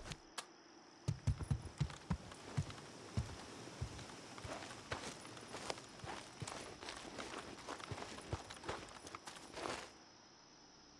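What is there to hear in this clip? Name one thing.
Footsteps crunch on dirt ground.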